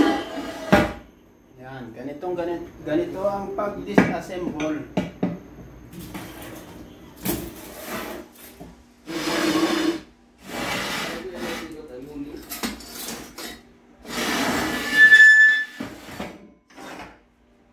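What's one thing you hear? Metal parts clank and scrape against each other.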